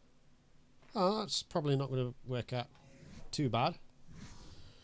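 A man speaks briefly with animation into a close microphone.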